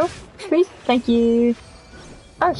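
A short chime rings out.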